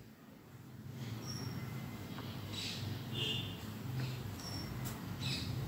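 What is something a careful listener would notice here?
Small birds chirp softly nearby.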